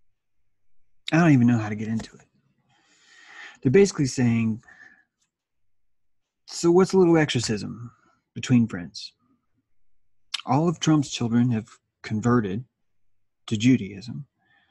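A middle-aged man speaks calmly, heard over an online call.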